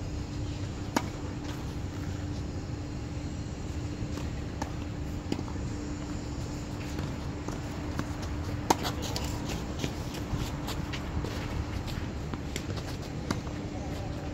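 Tennis balls are struck with sharp pops of rackets.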